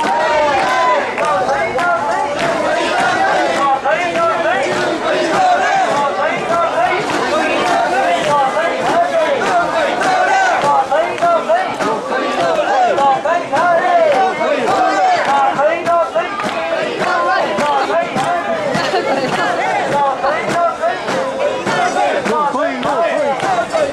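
A crowd of men chant loudly together in rhythm, close by, outdoors.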